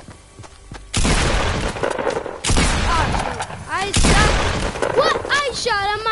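Gunshots blast in rapid bursts.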